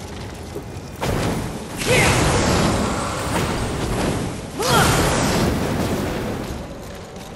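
Flames roar and whoosh in loud bursts.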